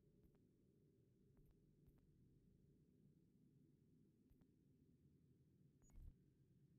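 Soft menu clicks sound a few times.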